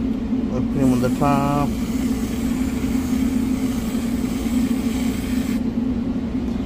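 A whipped cream can sprays with a steady hiss.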